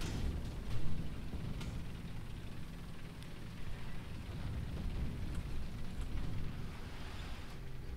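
Tank tracks clank and rattle over grass.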